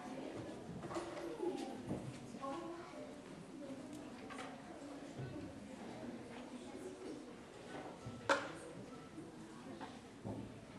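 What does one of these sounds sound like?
A children's string orchestra plays violins together.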